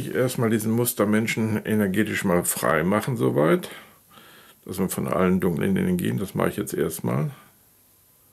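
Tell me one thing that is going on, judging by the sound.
An elderly man speaks slowly and calmly, close by.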